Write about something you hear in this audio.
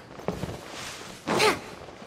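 Leaves rustle as something brushes through a bush.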